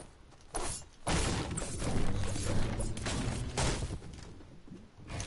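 A pickaxe strikes wood again and again.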